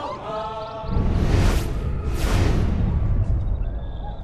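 A loud rushing whoosh swells and fades.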